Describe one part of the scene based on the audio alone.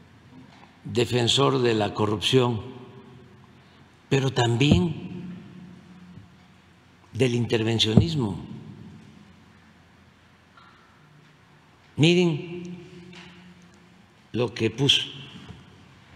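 An elderly man speaks slowly and calmly into a microphone, in bursts with long pauses, in a reverberant hall.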